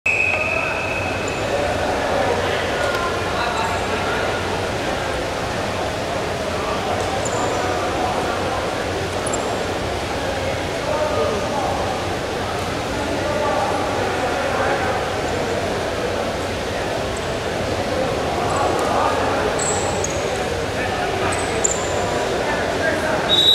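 Wrestlers' feet shuffle and thump on a mat.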